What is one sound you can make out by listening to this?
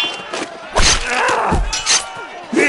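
Metal blades clash sharply.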